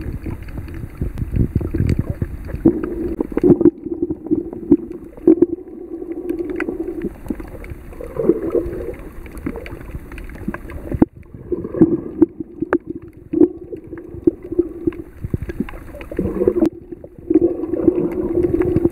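Muffled water bubbles and crackles underwater.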